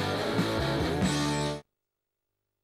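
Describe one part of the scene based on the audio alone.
A rock band plays loudly with electric guitar and drums.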